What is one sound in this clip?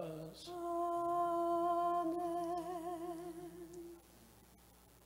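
A man chants in a long sustained tone, echoing in a large hall.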